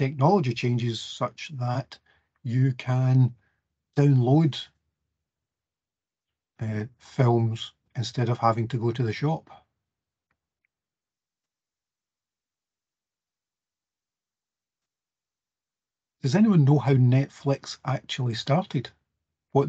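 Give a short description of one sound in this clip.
A man speaks calmly over an online call, with pauses.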